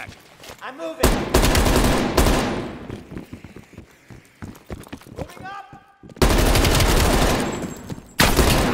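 A rifle fires rapid bursts of shots that echo in a tunnel.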